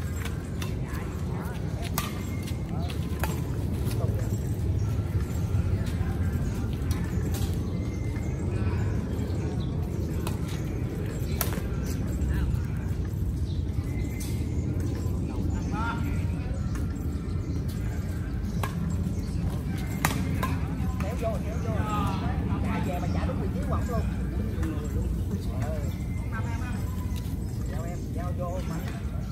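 Badminton rackets strike a shuttlecock outdoors.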